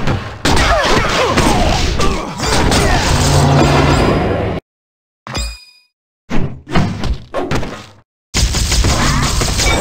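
Fists and blows thud in a brawl.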